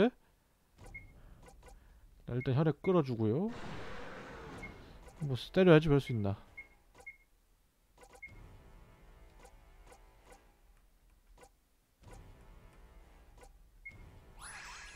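A short chime blips as a menu choice is made.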